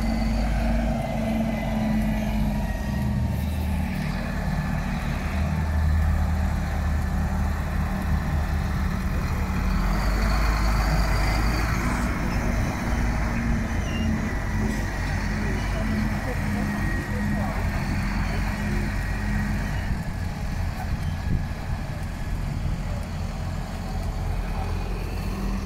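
A tractor engine rumbles loudly nearby as the tractor drives slowly past.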